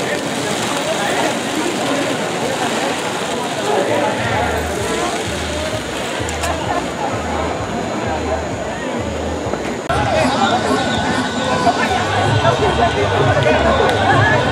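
A crowd of people talks and shouts outdoors.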